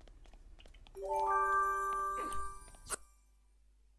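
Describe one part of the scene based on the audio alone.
A bright musical chime rings out with a few bell-like notes.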